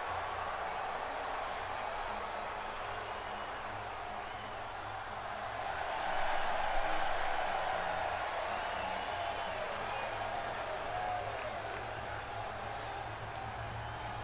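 A large crowd cheers steadily in a big echoing arena, swelling louder for a moment.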